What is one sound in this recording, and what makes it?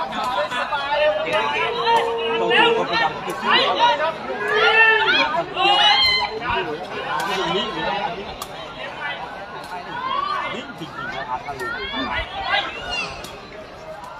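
A crowd of men and women chatters and shouts excitedly outdoors nearby.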